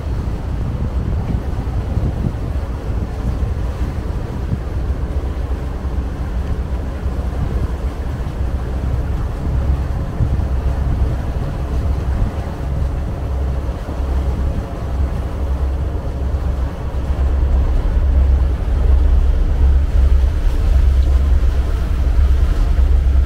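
Water rushes along a boat's hull.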